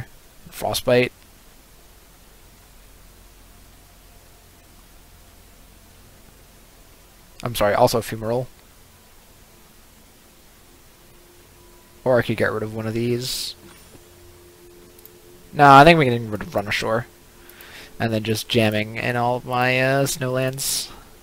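A young man talks in short bursts close to a headset microphone.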